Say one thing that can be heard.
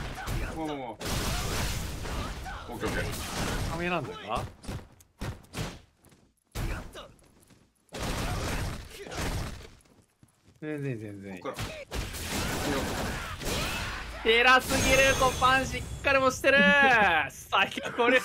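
Heavy punches and kicks land with sharp thuds and cracks.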